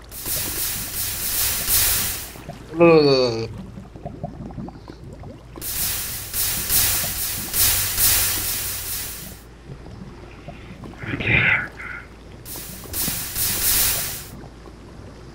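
Water gushes and splashes in bursts.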